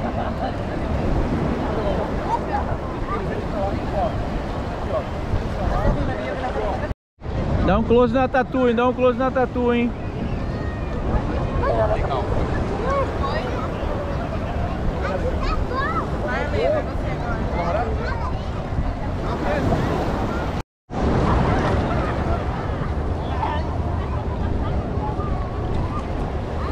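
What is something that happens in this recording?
Light wind blows outdoors.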